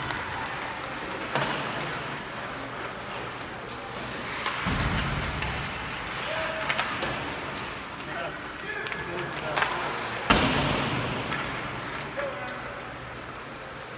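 Sounds echo through a large arena.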